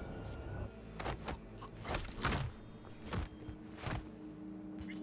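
Heavy blows thud and crack in a brief fight.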